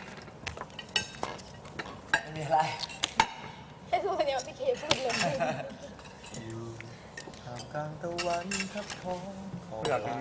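Dishes clink on a table.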